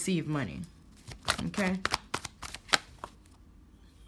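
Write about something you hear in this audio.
Cards shuffle and snap against each other in a hand.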